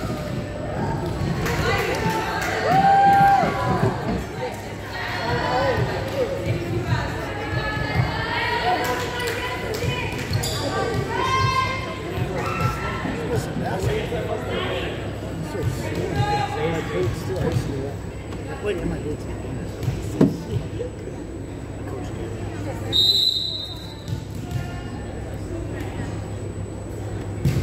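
Young women talk and call out with animation in a large echoing hall.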